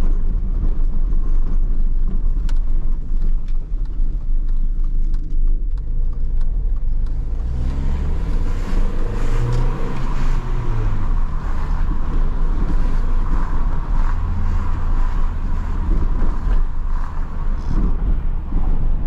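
Tyres rumble over cobblestones.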